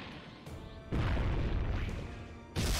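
A giant ball thuds heavily onto the ground.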